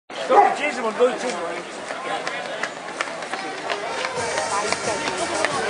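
A crowd of spectators talks and cheers nearby outdoors.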